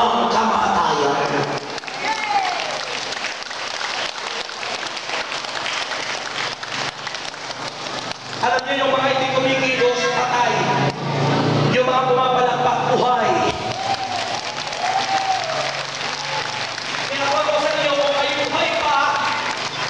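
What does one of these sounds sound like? A man sings loudly through a microphone and loudspeakers in a large echoing hall.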